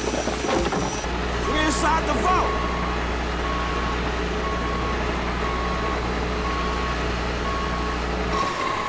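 A heavy vehicle's engine hums steadily.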